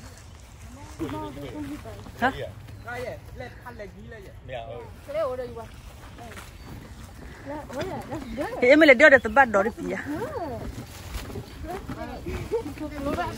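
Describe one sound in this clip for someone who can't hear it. Children talk and call out nearby, outdoors.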